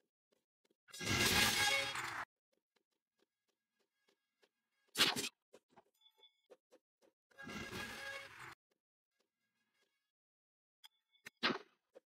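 Loud magical blasts burst out in short, noisy rushes.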